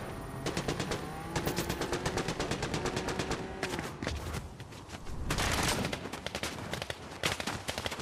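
Quick footsteps patter across the ground.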